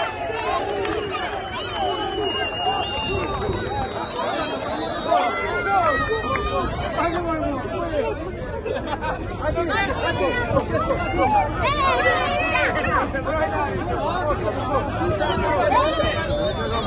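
A large crowd of men and women cheers and chants loudly outdoors.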